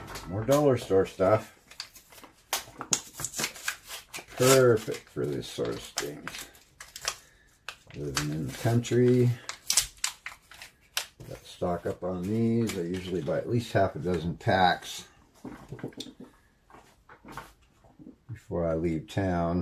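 Small parts click and rattle as hands handle them.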